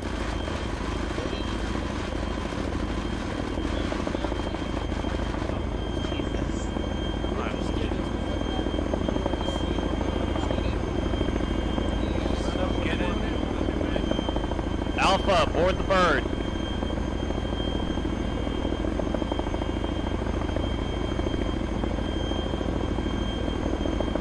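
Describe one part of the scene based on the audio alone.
A helicopter's rotor thumps and roars steadily nearby.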